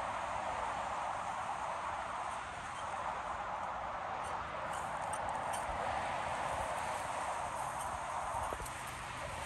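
Cars rush past steadily on a nearby highway.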